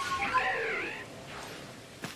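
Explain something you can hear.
A large bird cries out with a warbling call.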